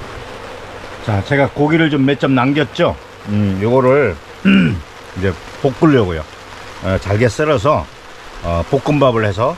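An elderly man talks calmly, close to the microphone.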